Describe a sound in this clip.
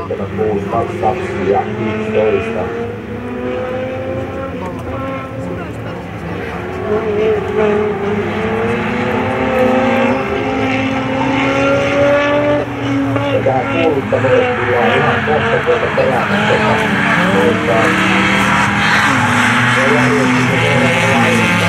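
Several race car engines roar and whine as the cars speed along a track, growing louder as they come near.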